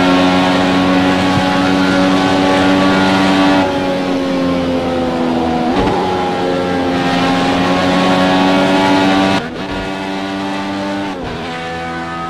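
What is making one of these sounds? A race car engine roars at high speed and shifts in pitch.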